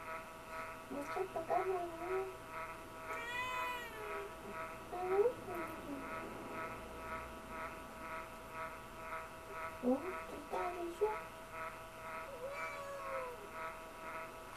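A cat meows repeatedly nearby.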